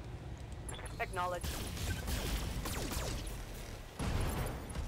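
Laser weapons fire in sharp blasts.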